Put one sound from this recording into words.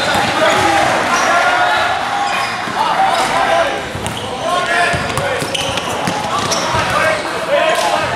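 Players and spectators shout and chatter in a large echoing gym.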